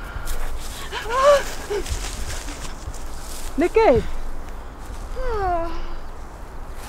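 A woman calls out nearby, outdoors.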